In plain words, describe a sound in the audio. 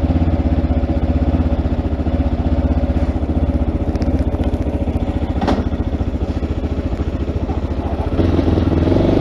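A motorcycle engine idles with a steady, throbbing rumble.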